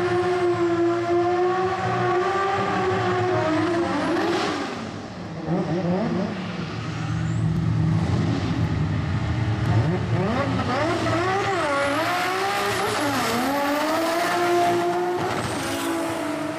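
A car engine revs loudly and roars as the car accelerates hard.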